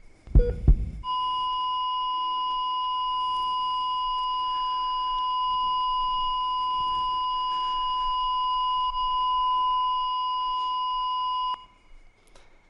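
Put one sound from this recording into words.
A heart monitor gives a long, steady flatline tone.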